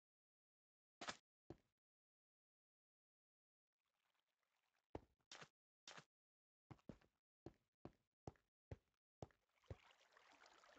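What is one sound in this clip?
Footsteps tap on a stone floor in a game.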